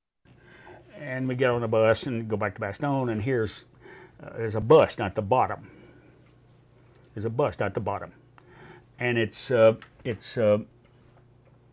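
An elderly man speaks calmly and close to a microphone, pausing between phrases.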